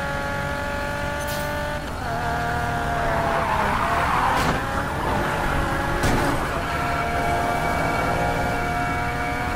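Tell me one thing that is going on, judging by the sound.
A car engine roars at high revs and shifts gears.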